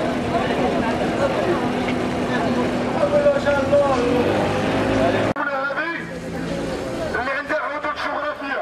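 A man shouts through a megaphone outdoors.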